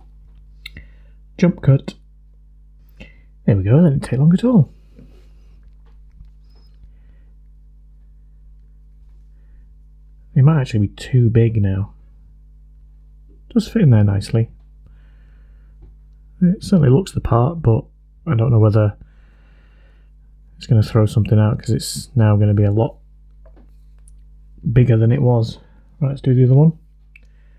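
Small plastic parts click and tap as hands handle them.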